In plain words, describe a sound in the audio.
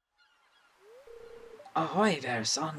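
A short chime plays as a dialogue box opens.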